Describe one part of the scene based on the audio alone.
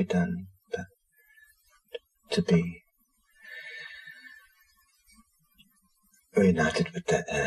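A middle-aged man speaks calmly and haltingly, close by.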